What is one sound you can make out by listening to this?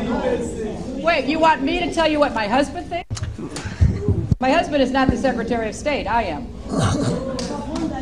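A woman speaks with animation into a clip-on microphone.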